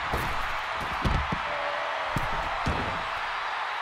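Heavy bodies thud hard onto the floor.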